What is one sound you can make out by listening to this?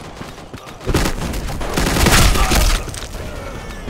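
Rapid gunfire bursts nearby.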